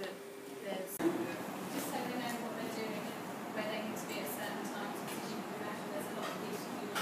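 A small group of people murmurs and talks quietly in a room nearby.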